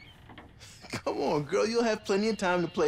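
A man speaks in a friendly, coaxing way from across the room.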